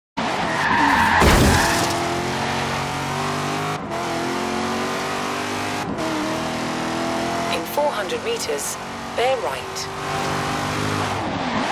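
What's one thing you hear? A car engine roars and revs up steadily as the car speeds up.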